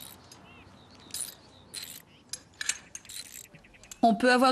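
Metal tools clink against an engine.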